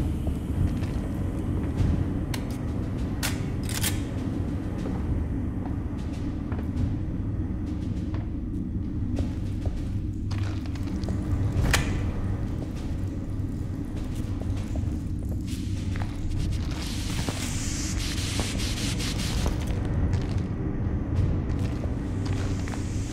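Footsteps clank on metal stairs and floor.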